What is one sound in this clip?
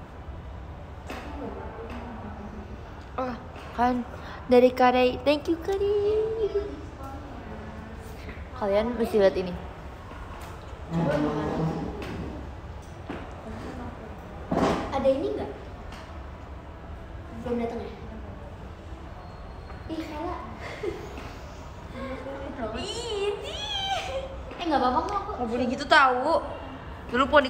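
A young woman talks playfully, close by.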